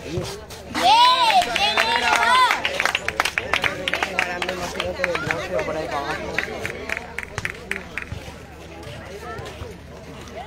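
A volleyball is struck with dull thuds during a rally.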